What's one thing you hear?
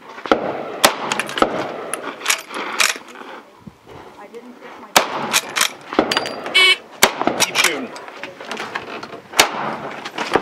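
A rifle fires loud, sharp shots a few seconds apart.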